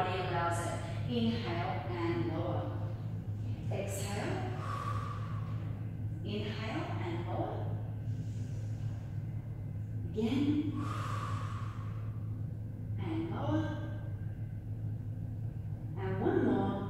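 A woman speaks calmly and steadily, close to a microphone.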